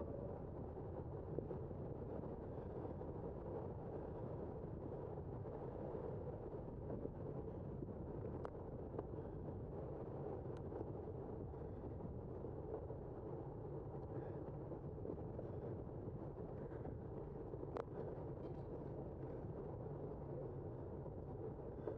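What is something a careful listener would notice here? Tyres roll steadily on smooth pavement.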